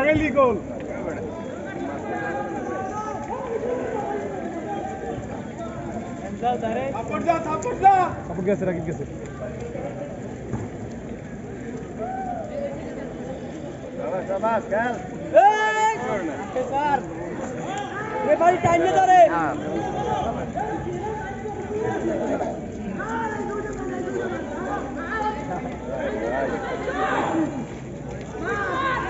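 A crowd of young men chatters and shouts outdoors.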